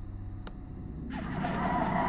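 Magic spells zap and crackle.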